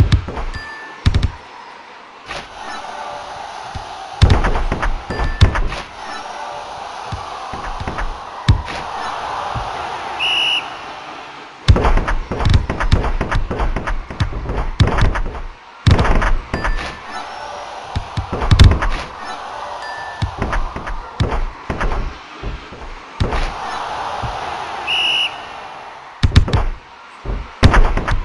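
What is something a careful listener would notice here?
A ball is kicked with sharp thuds in a game.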